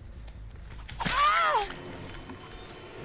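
A blade slashes through flesh with a wet thud.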